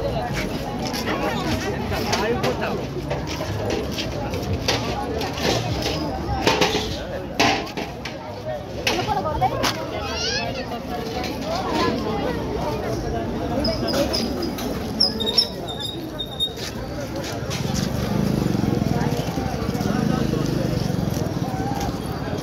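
A crowd murmurs and chatters all around outdoors.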